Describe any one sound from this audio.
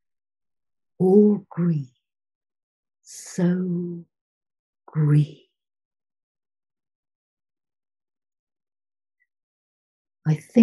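An older woman reads aloud calmly over an online call, with pauses between phrases.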